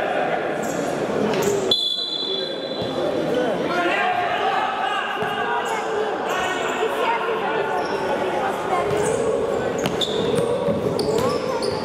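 A futsal ball is kicked on an indoor court.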